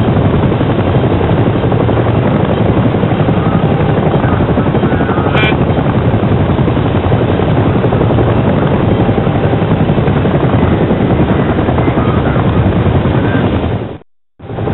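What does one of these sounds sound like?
A helicopter's rotor thumps and its engine roars steadily.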